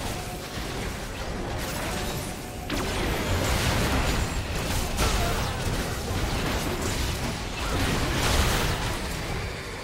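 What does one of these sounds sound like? Magic blasts and clashing fight sounds crackle and burst in quick succession.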